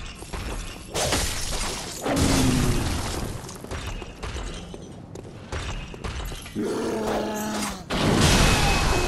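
Heavy blows strike with sharp thuds.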